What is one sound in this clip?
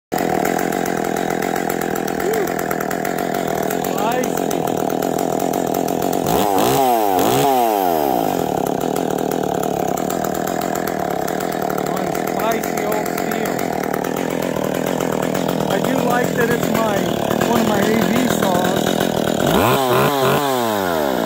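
A chainsaw engine idles with a steady, rattling drone.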